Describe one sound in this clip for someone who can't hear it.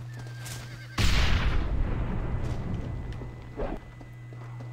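A bottle bursts into flames with a loud roaring whoosh that slowly dies away.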